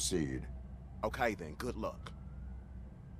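A man answers in a deep, flat, slightly robotic voice.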